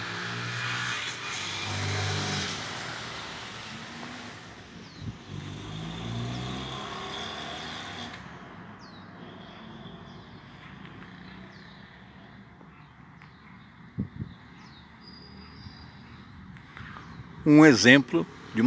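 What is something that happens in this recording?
A car drives past on a nearby street.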